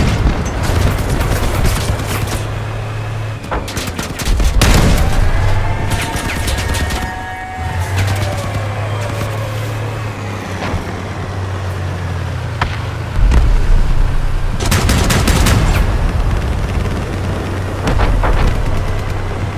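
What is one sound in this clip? Guns fire with loud bangs.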